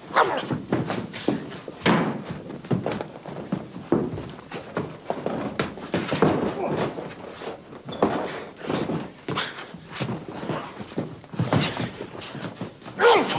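Bodies thump and clothes rustle in a scuffle.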